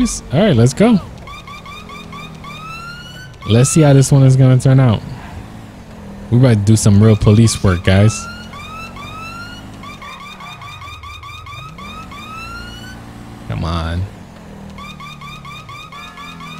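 A police siren yelps in quick repeated rising bursts.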